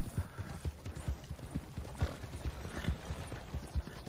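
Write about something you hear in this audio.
A horse-drawn wagon rattles past.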